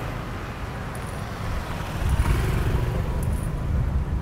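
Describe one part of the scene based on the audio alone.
A motor scooter drives past close by.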